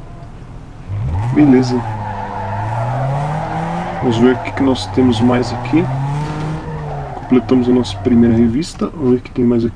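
A car engine revs and roars as the car speeds up.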